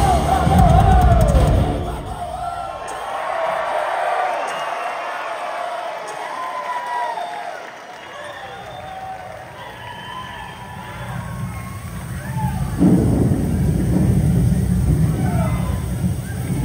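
A band plays loud music with a heavy, booming bass.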